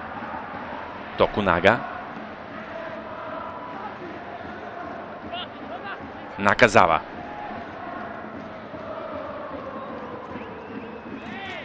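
A large crowd chants and roars steadily in a stadium.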